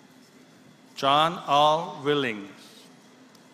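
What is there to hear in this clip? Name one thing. A man announces a name through a loudspeaker in a large echoing hall.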